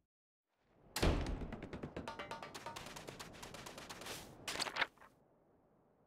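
Footsteps crunch on sand.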